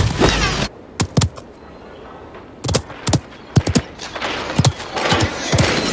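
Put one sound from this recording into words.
Sharp shots crack one after another.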